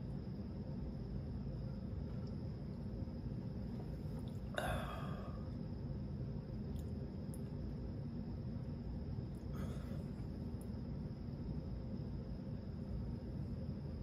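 A man sips a drink and swallows.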